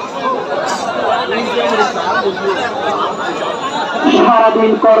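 A large outdoor crowd chatters and murmurs throughout.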